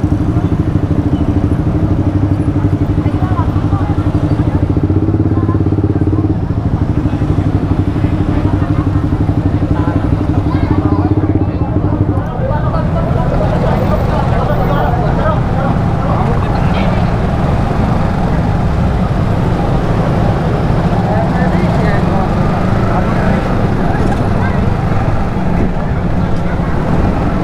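Other motorcycles putter past on the street.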